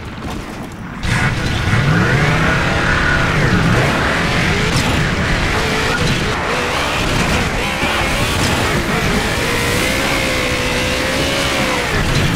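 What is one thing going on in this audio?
A vehicle engine roars and revs up and down.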